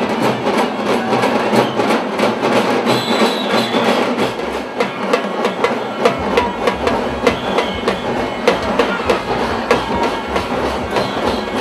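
People in a crowd clap their hands.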